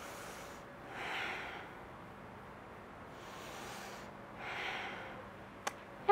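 A woman breathes out slowly and deeply.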